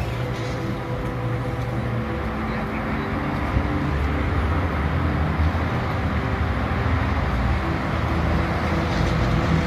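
A shovel scrapes and digs into dirt.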